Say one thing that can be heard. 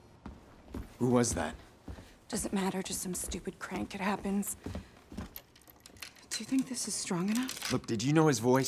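A young woman speaks in a worried, hurried voice close by.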